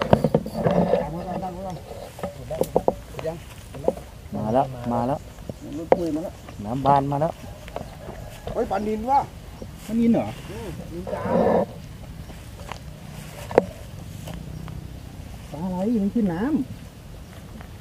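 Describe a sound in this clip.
A man talks casually close by, outdoors.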